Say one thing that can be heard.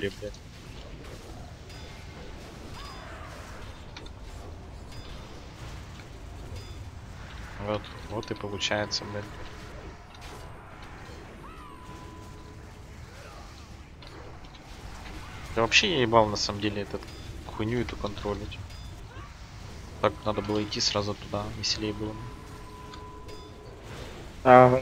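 Magic spells whoosh and crackle in a game battle.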